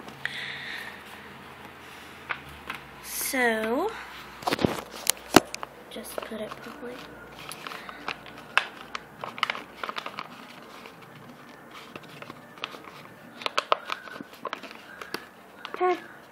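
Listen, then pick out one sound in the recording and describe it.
Stiff paper rustles and crinkles as it is handled.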